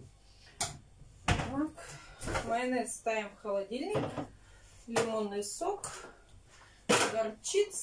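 A refrigerator door opens and closes.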